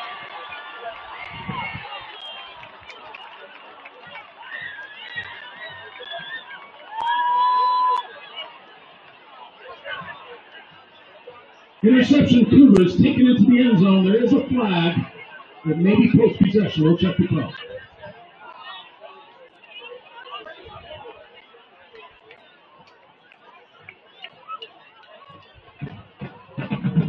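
A crowd of players and spectators chatters outdoors in the distance.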